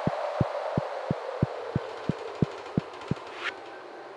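Footsteps tap on a wooden floor in a quick, even rhythm.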